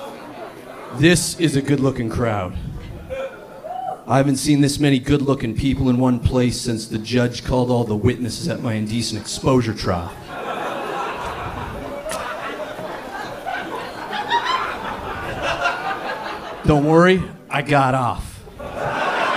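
A man talks loudly into a microphone, heard through loudspeakers.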